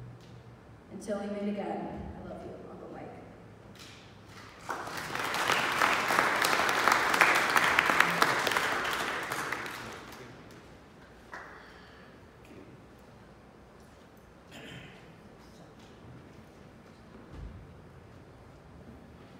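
A woman speaks calmly through a microphone in a large, echoing room.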